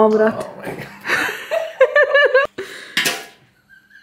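A cookie snaps as a piece is broken off.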